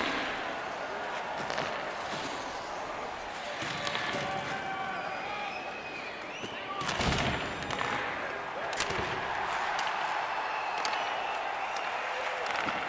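A large arena crowd murmurs and cheers steadily.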